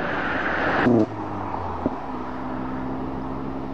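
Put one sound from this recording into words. A fire engine's diesel engine rumbles at idle.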